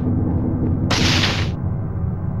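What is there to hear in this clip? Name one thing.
A toy blaster fires a short hissing burst.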